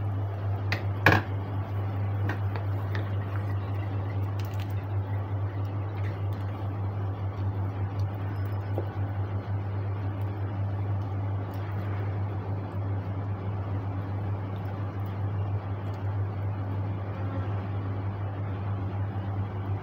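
A wooden spoon stirs food in a pot, knocking and scraping against its side.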